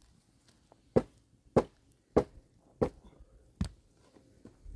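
Objects clatter as a woman handles them on the ground.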